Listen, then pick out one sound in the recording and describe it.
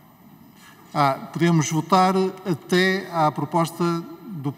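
A woman reads out through a microphone.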